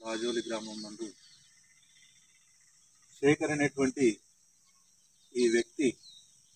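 A man speaks calmly and clearly, close by, in short bursts.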